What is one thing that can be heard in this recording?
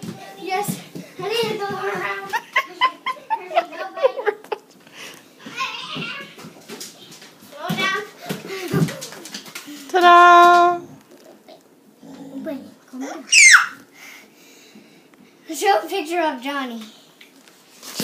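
A young boy talks and laughs excitedly close by.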